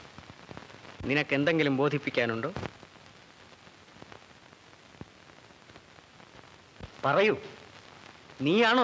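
A man speaks with feeling, in short bursts.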